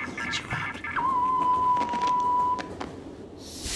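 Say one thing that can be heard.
A monitor gives off a steady high beep.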